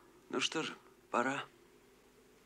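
A man says a few words in a low voice.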